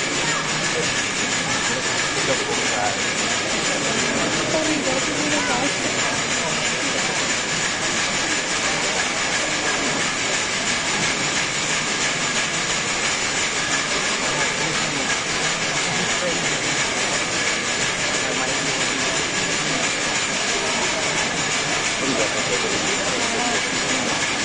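A large crowd chatters and calls out loudly in an echoing hall.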